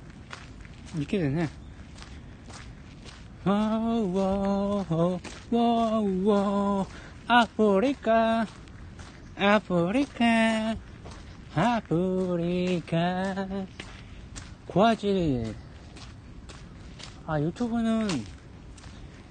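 A young man sings loudly and closely into a phone microphone.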